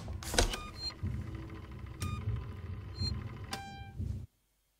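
Buttons on a phone panel click as they are pressed.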